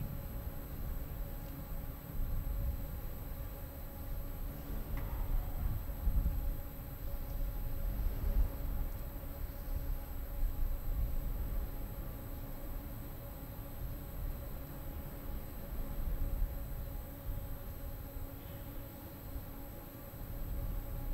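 A man speaks quietly at a distance in a large echoing hall.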